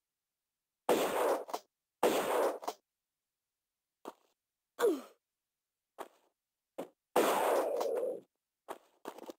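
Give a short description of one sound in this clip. Pistol shots ring out and echo in a stone room.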